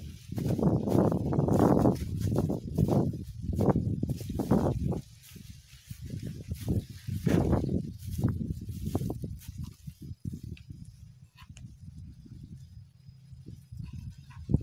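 Wind gusts rumble across the microphone outdoors.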